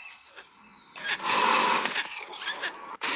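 Small creatures screech and snarl as they attack.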